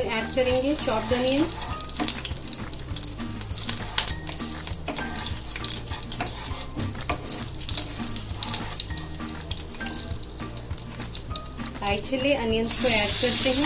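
Seeds crackle and pop in hot oil.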